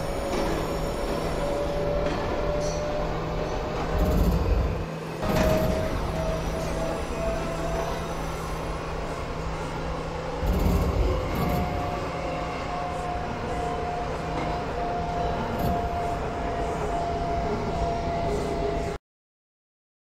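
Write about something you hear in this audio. A subway train rumbles and clatters along the tracks with a rising whine.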